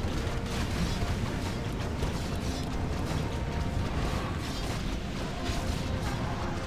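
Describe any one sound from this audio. Magic spells crackle and burst in a busy battle.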